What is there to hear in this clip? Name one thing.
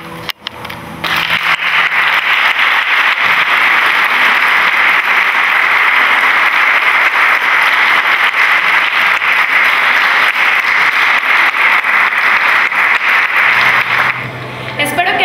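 An audience claps loudly and steadily.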